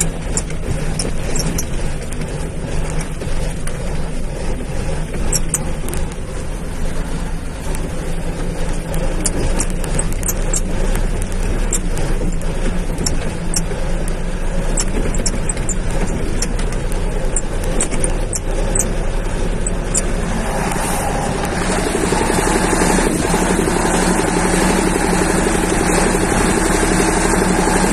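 A vehicle engine rumbles steadily as it drives over a rough dirt track.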